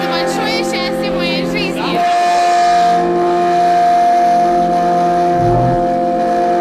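An electric guitar plays sustained chords.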